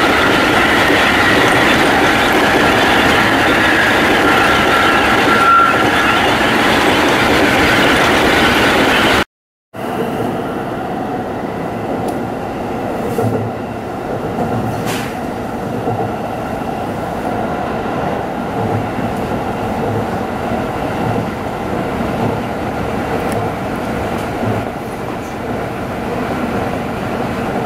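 A train rumbles along at speed, heard from inside a carriage.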